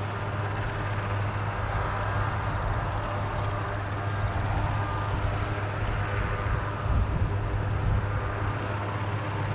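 A helicopter's turbine whines loudly.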